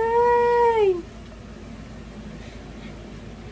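Liquid pours in a thin stream into a bowl.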